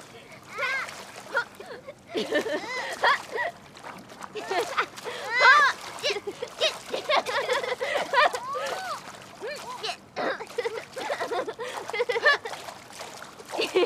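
Children splash water in a pool.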